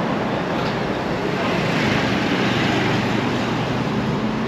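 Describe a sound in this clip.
A motorbike passes close by.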